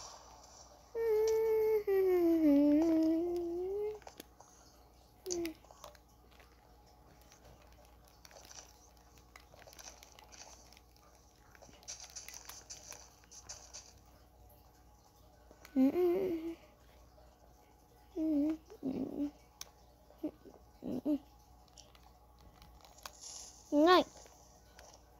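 A handheld game console plays short electronic jingles and bleeps through a small speaker.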